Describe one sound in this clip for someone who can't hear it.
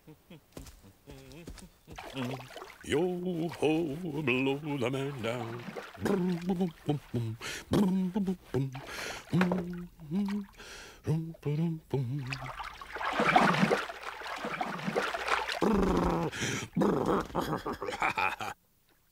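A cartoon bear speaks slowly in a deep, drowsy voice.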